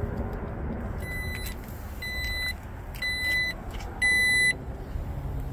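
A power tailgate beeps in a series of sharp electronic chimes.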